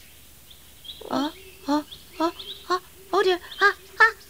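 A deeper puppet voice speaks with animation.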